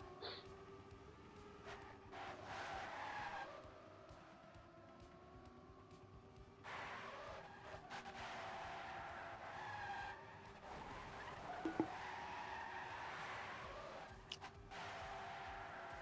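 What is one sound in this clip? A racing car's engine whines steadily, rising and falling in pitch as it speeds along.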